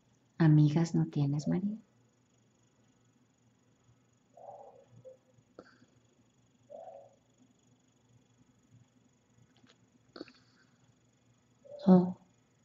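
A young woman speaks close by, softly.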